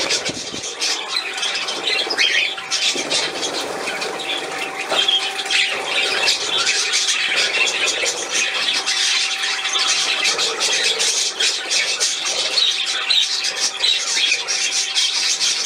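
Small birds splash and flutter in shallow water.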